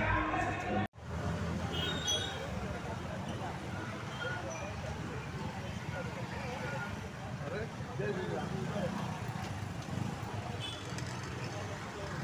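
Motorcycle engines rumble steadily as a line of riders passes close by.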